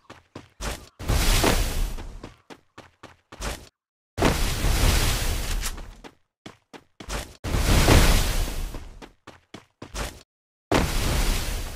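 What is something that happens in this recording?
Walls of ice burst up with loud whooshing rushes, again and again.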